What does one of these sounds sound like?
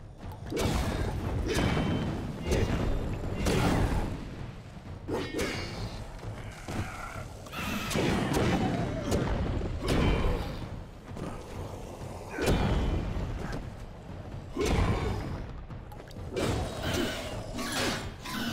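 A sword slashes and strikes creatures again and again.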